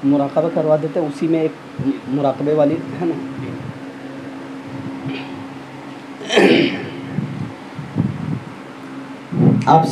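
A man speaks with animation into a microphone, heard through a loudspeaker with pauses.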